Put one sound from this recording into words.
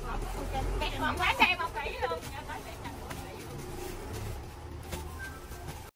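Plastic bags rustle and crinkle as they are handled.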